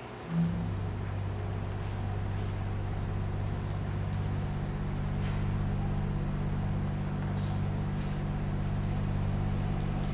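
An accordion plays sustained low notes in an echoing hall.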